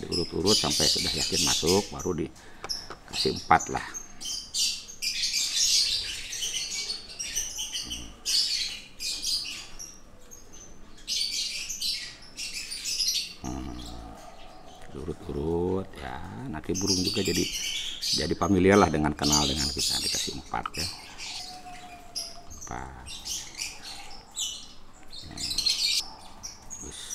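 Water drips and splashes softly as hands wash a small bird.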